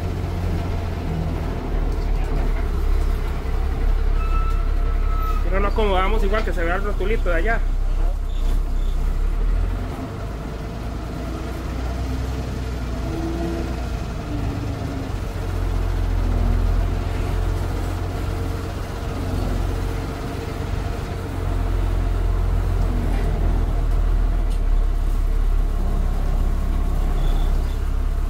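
A bus engine rumbles low and steady as the bus drives along.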